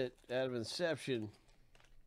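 A foil wrapper crinkles and rustles.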